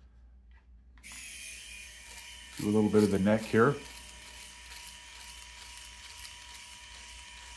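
An electric shaver buzzes steadily against skin.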